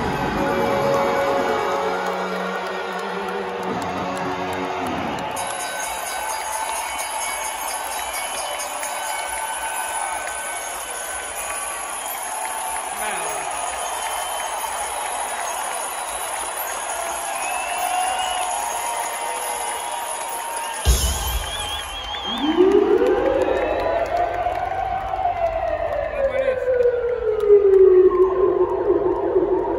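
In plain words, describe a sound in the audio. Loud rock music plays through powerful loudspeakers.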